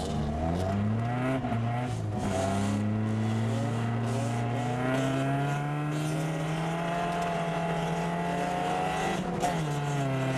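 Tyres crunch on a snowy road.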